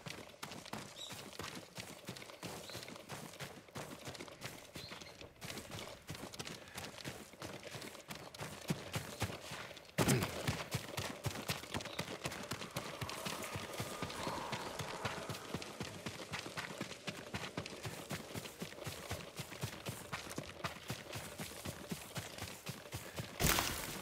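Footsteps run quickly through grass and over stone.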